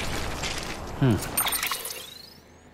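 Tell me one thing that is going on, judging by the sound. A deep electronic whoosh sweeps downward as a menu opens.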